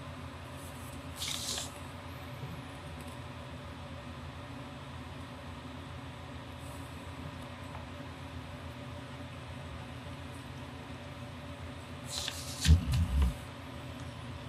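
A sheet of paper rustles as it is shifted.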